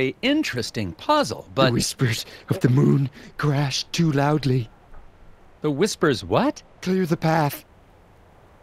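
A man speaks in a calm, dry voice.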